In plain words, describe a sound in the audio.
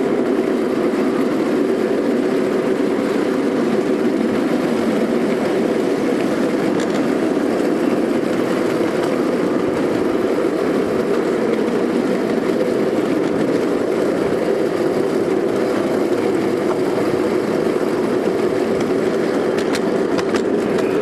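A miniature train rumbles and clatters steadily along its rails.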